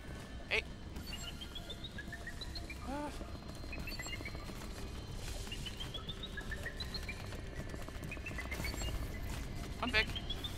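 Quick light footsteps patter at a run.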